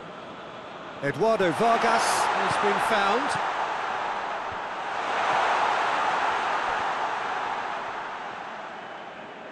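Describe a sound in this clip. A stadium crowd roars steadily and swells.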